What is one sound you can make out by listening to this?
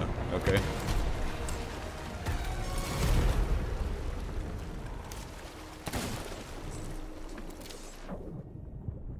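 Water splashes and sloshes nearby.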